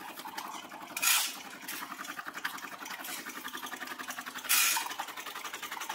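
Coffee beans pour and rattle into a plastic container.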